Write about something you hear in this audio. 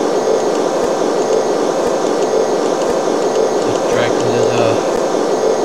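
A hovering craft's engine whirs steadily.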